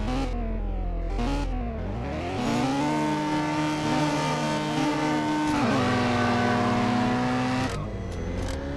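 A car engine revs hard and loud, rising and falling.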